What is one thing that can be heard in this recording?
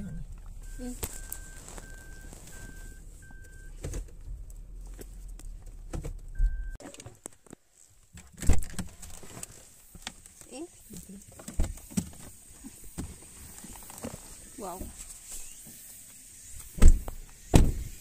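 Fabric rustles and knocks against a phone.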